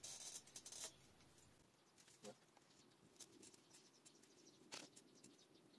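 Hands rustle and press soil around a plant.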